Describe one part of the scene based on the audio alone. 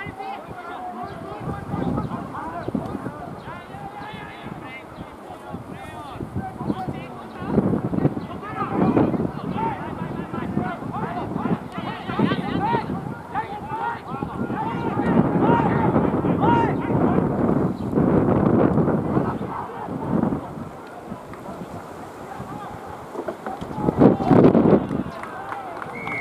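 Rugby players shout and call to each other across an open field.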